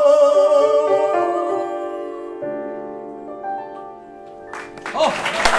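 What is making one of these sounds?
A man and a woman sing a duet with a piano.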